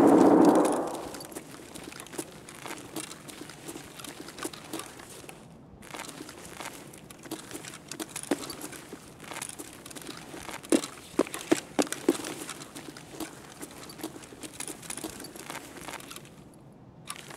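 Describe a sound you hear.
Footsteps tap steadily on a hard floor while walking.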